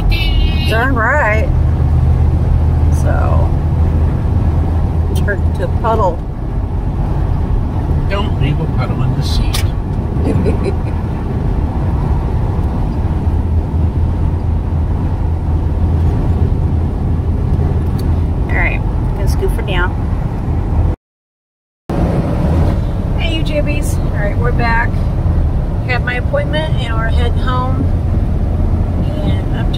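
A vehicle's engine hums steadily as tyres roll along a road.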